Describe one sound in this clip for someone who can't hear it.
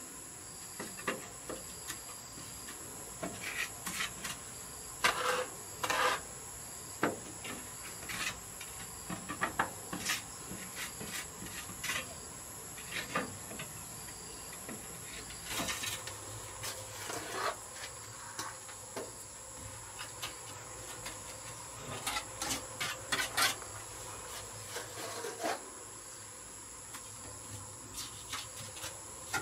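A trowel scrapes and taps against a wall now and then.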